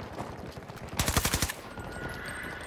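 A rifle fires a rapid burst close by.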